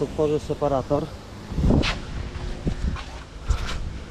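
A van's rear door clicks open.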